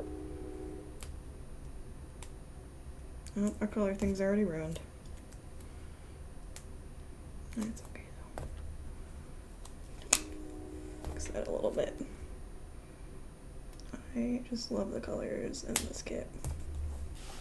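Paper stickers rustle and crackle under fingers.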